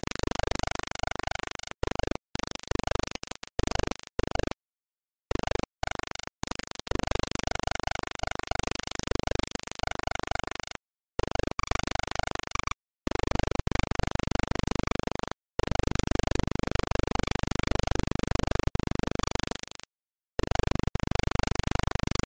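Electronic game music plays in chiptune tones.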